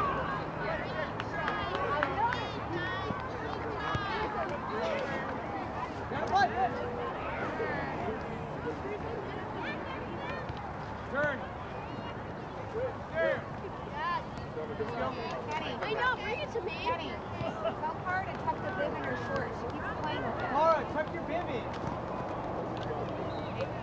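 A crowd of spectators chatters and calls out across an open field outdoors.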